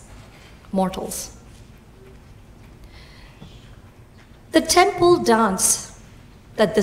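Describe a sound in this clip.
A young woman speaks calmly through a microphone in an echoing hall, pausing between phrases.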